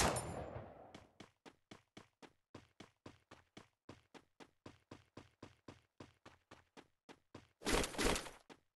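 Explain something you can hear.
Quick footsteps run steadily over ground.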